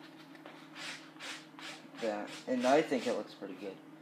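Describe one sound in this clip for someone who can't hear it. Hands brush briskly over cloth.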